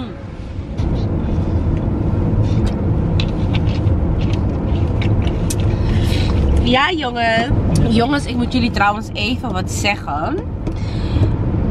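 A car's interior rumbles steadily with road noise.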